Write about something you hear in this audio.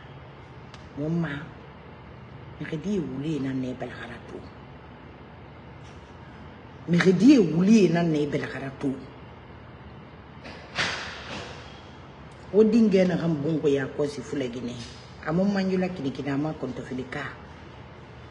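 A woman talks with animation, in bursts with pauses, close to a microphone.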